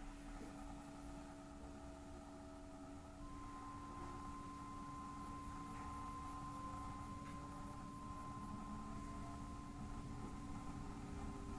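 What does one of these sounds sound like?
An electric train motor whines steadily.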